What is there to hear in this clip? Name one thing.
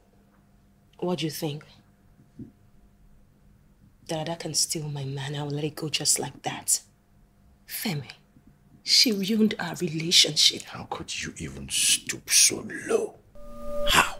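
A woman speaks with rising emotion, arguing.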